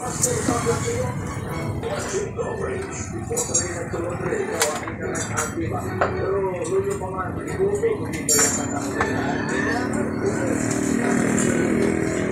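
Metal parts of a motorcycle clink and rattle.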